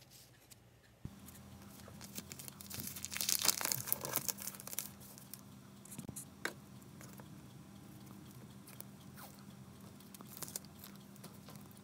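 A paper bag rustles and crinkles as hands fold it.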